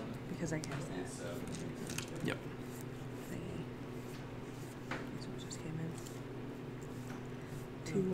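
Playing cards slide and tap softly.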